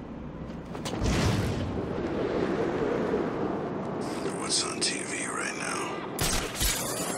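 Wind rushes past loudly during a glide.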